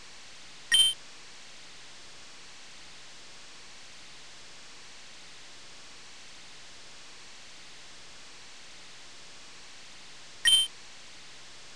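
A short electronic beep sounds.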